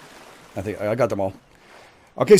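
Water laps gently nearby.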